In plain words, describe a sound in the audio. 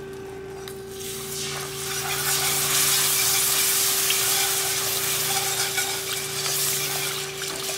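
Liquid pours into a hot pan with a loud rushing hiss.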